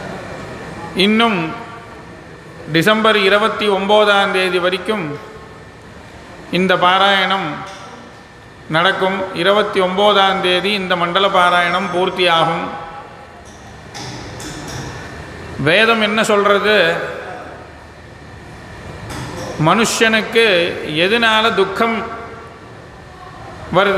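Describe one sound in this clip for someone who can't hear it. A man chants in a steady, sung tone into a microphone, in phrases with pauses between them.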